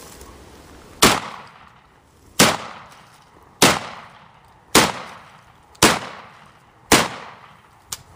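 A rifle fires a series of loud shots outdoors, each echoing briefly.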